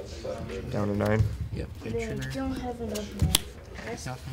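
A die clicks down onto a table.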